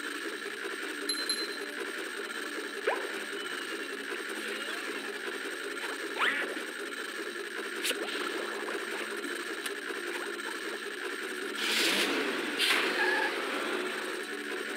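Video game music plays steadily throughout.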